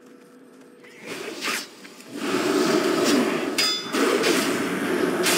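Swords clash and magic spells burst loudly.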